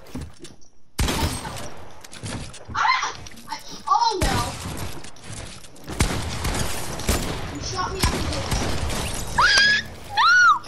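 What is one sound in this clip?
Gunshots boom in rapid bursts.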